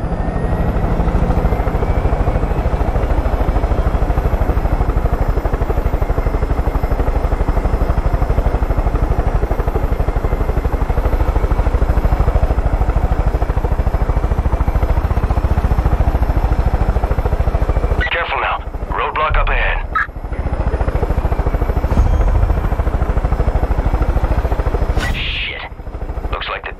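A helicopter's rotor chops steadily up close.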